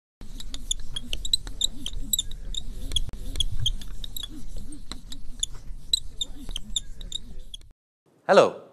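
A marker squeaks in quick strokes across a whiteboard.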